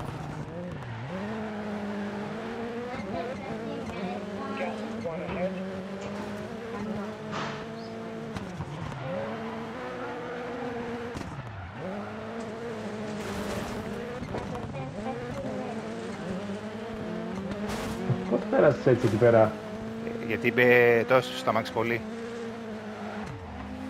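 A rally car engine revs hard and shifts gears.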